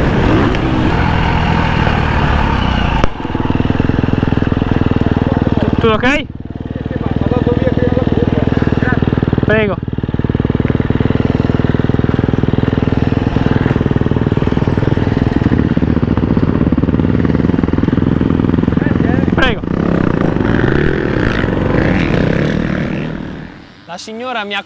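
A dirt bike engine roars loudly close by.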